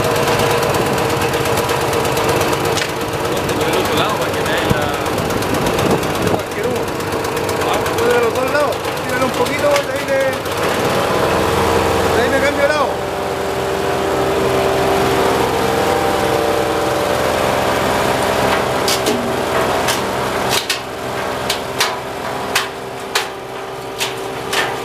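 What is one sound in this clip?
A small petrol engine runs with a steady drone.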